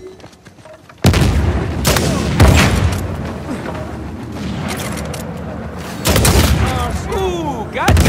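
Gunshots crack and boom in rapid bursts.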